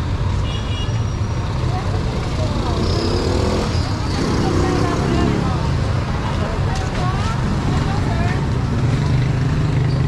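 Motorcycles and tricycles drive past.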